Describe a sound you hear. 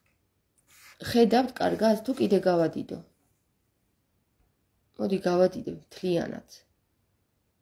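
A young woman speaks calmly, close to the microphone.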